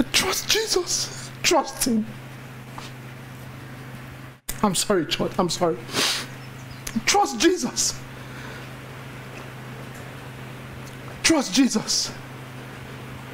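A man preaches with animation through a microphone, in bursts with pauses.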